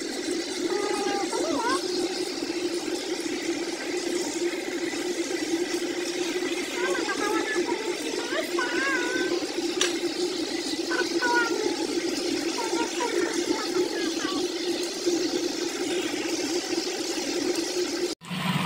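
Chicken sizzles and crackles in hot oil in a frying pan.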